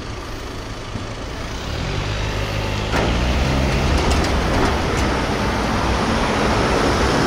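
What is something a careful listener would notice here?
Car engines hum nearby.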